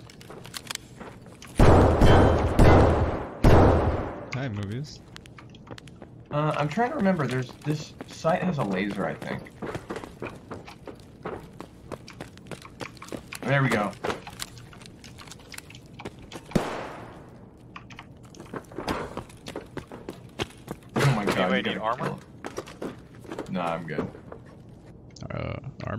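Footsteps crunch over gravel and debris.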